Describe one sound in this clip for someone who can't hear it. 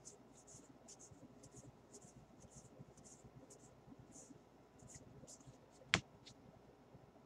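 Cardboard trading cards are flicked through by hand, with soft rustling and snapping.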